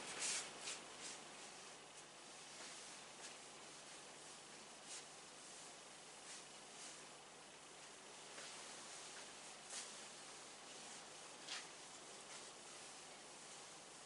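A cloth wipes across a whiteboard.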